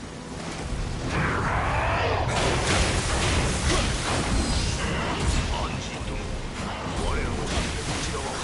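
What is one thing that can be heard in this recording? A large beast roars and snarls loudly.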